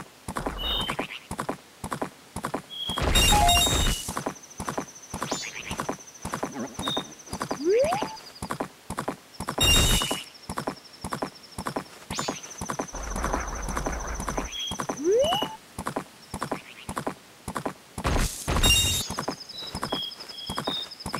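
Game chimes and bleeps ring out now and then.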